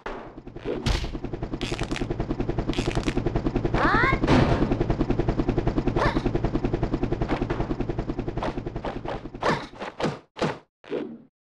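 Music with a steady beat plays.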